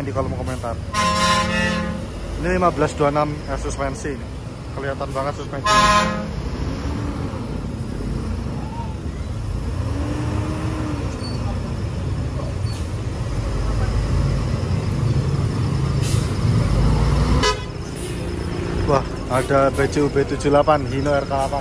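A bus engine rumbles deeply as the bus slowly pulls out.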